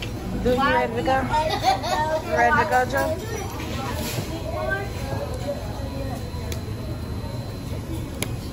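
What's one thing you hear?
A young boy speaks excitedly close by.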